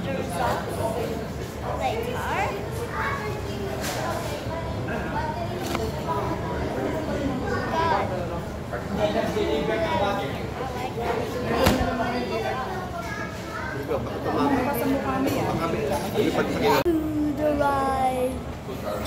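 A young boy talks close by, with animation.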